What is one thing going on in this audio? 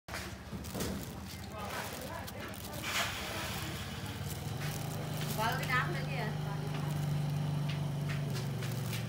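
A plastic bag crinkles and rustles as it is rummaged through.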